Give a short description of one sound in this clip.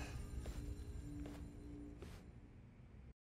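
Footsteps clatter quickly down stairs.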